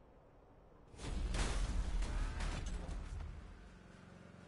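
A loud explosion bursts and rumbles away.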